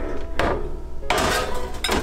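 A ceramic dish scrapes onto a metal rack.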